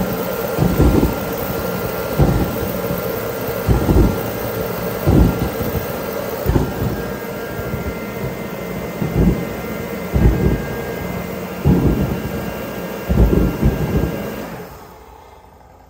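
A kerosene heater roars loudly and steadily.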